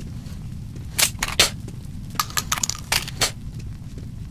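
Metal weapon parts click and clack as a gun is handled.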